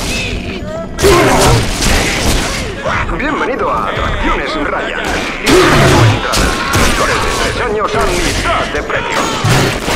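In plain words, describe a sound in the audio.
A gun fires in loud, echoing blasts.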